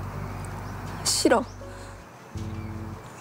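A young woman speaks in a pained voice close by.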